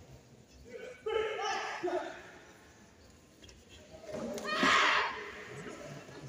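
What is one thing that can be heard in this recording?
Young women fighters shout sharply.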